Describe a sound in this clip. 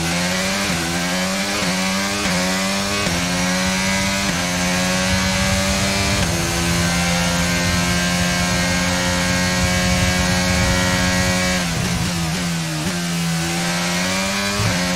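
A racing car engine screams, rising in pitch through each gear and dropping at every shift.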